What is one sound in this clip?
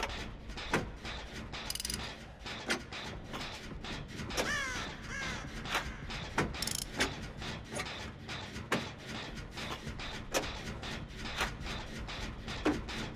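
Metal parts clank and rattle as a generator is being repaired.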